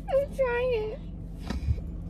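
A woman exclaims loudly close by.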